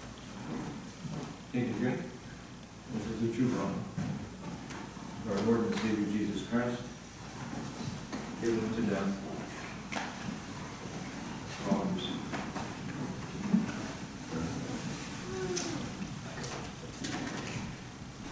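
A man speaks calmly in a large echoing room, with pauses between phrases.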